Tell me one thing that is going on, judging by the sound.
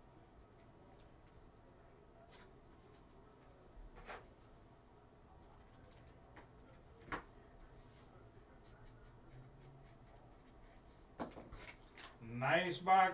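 Trading cards and plastic card holders click and tap softly as hands handle them.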